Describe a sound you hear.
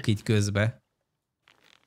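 A man speaks briefly and close into a microphone.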